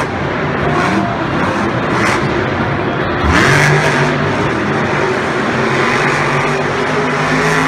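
A monster truck engine roars loudly and revs.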